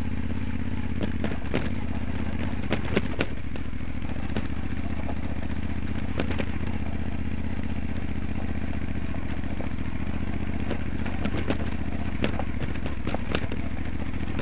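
Tyres crunch and knock over loose stones.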